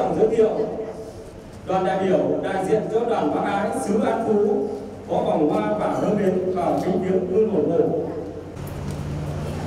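An elderly man speaks solemnly through a microphone and loudspeaker.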